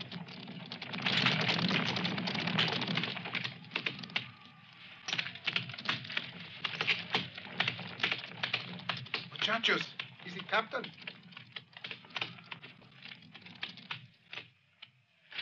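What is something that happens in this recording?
Horses' hooves clatter on hard dirt.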